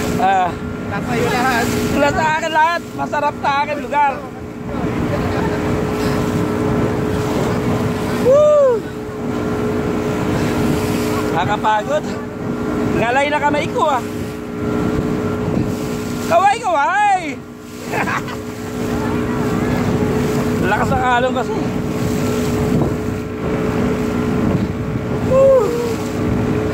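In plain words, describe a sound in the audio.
Strong wind rushes past a close microphone.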